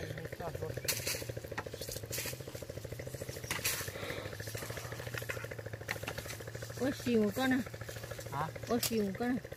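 Dry branches snap and crack as a man cuts through brush.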